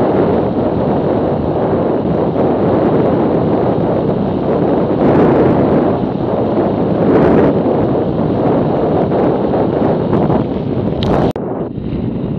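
Strong wind roars past while riding at speed.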